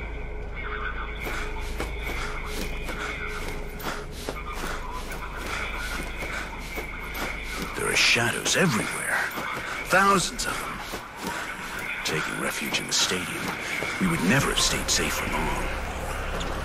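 A taut cable creaks and rattles as a person climbs hand over hand along it.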